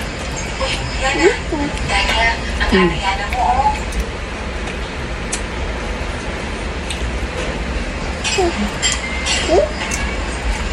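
A woman talks casually nearby.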